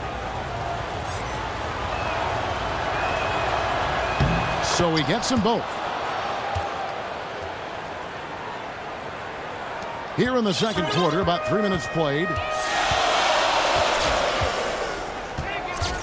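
A crowd in a large arena cheers and roars.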